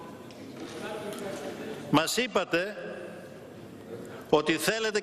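A man speaks forcefully into a microphone in a large echoing hall.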